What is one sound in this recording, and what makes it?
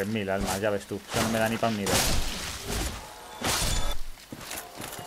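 Sword blows land with heavy thuds.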